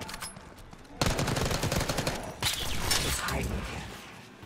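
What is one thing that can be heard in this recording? Gunfire rattles in a rapid burst.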